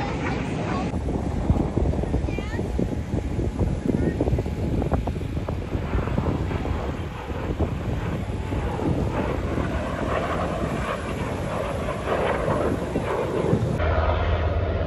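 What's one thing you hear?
A jet plane roars overhead.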